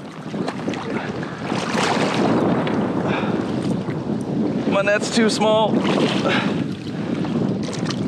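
Water splashes as a fishing net is dipped in and lifted.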